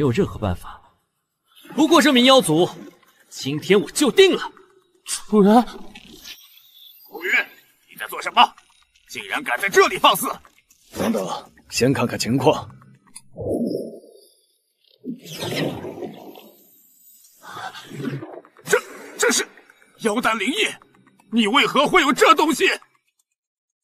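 A man speaks angrily, raising his voice to a shout.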